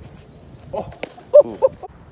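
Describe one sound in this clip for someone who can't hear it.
A baseball smacks into a mitt at a distance.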